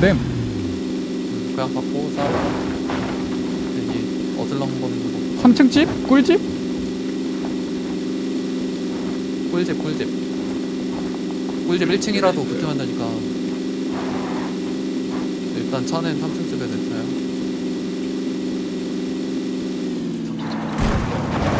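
A car engine drones steadily while driving over rough ground.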